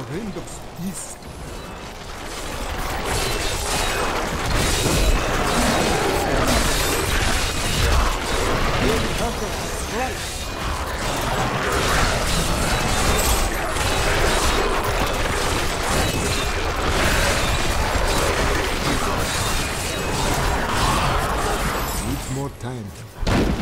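Game spells crackle and blast in a dense, noisy fight.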